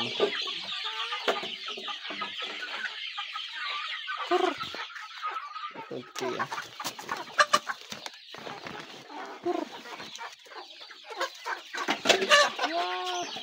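Chickens cluck nearby.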